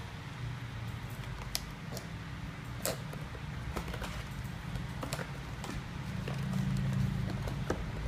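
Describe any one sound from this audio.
A cardboard box rustles and scrapes as hands handle and open it.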